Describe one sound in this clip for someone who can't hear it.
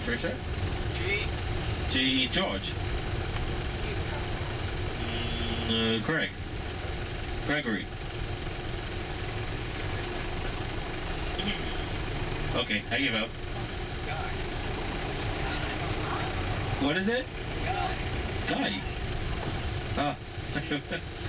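A car engine rumbles steadily, heard from inside the car.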